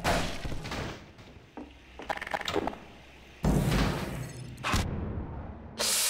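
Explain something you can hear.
A metal barrel clangs as it is thrown.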